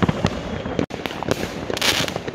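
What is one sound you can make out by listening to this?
Fireworks bang loudly nearby.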